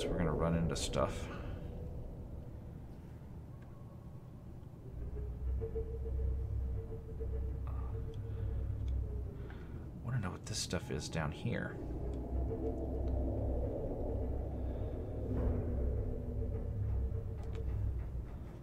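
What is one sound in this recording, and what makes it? A deep underwater rumble drones steadily, growing louder partway through.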